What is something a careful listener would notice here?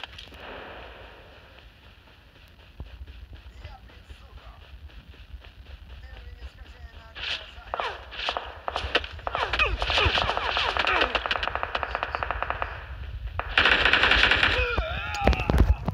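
Footsteps crunch through grass and along a road.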